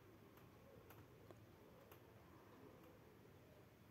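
Wooden beads click softly against each other.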